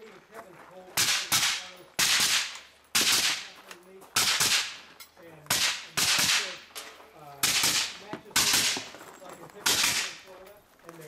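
Gunshots crack one after another outdoors, echoing briefly.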